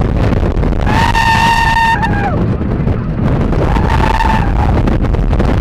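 Riders scream with excitement.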